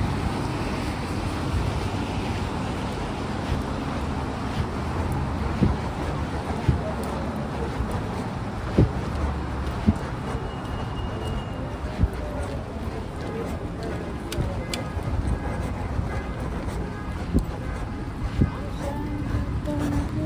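Traffic hums steadily outdoors in a city street.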